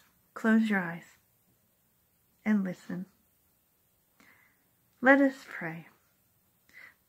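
A middle-aged woman speaks calmly in short phrases close to the microphone.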